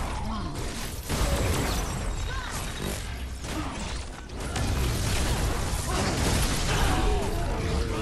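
Magic zaps and crackles.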